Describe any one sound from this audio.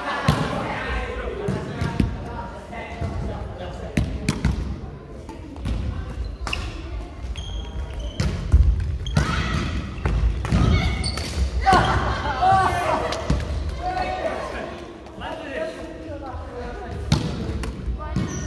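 Sneakers squeak and thud on a wooden floor.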